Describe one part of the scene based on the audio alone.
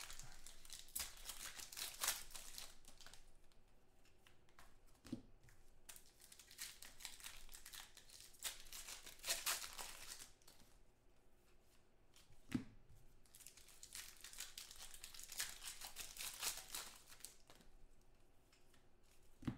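Foil wrappers crinkle and tear as they are ripped open.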